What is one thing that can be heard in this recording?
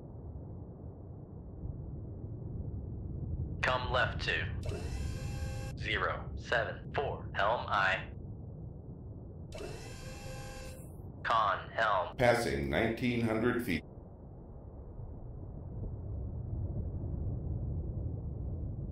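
A submarine's engine rumbles low and steady underwater.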